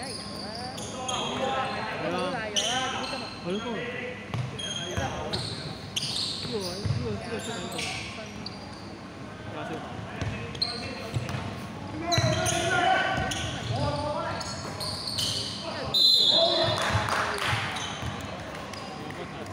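Young men shout and call out to each other across the court.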